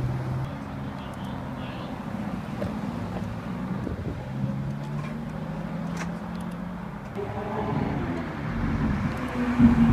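A second sports car engine roars deeply as it pulls away.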